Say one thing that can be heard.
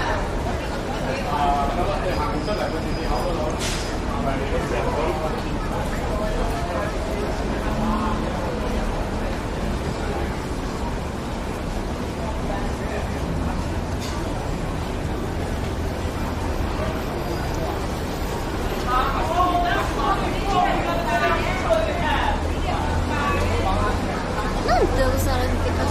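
Street noise and the murmur of passers-by hum steadily outdoors.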